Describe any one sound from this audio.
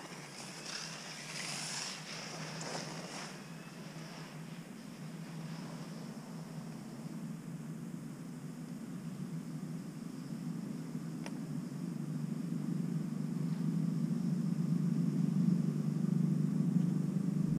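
Wind blows steadily outdoors, growing stronger.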